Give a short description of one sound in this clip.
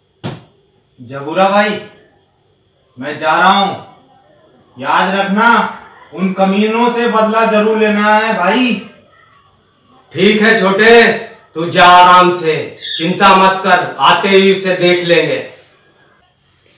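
Another young man answers calmly nearby.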